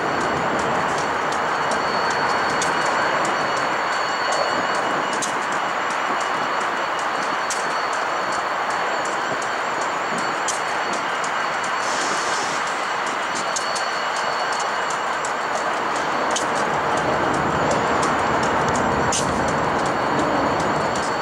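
A diesel locomotive rumbles steadily as it slowly pulls a freight train.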